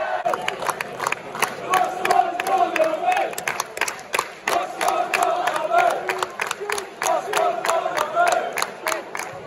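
A crowd sings and chants together.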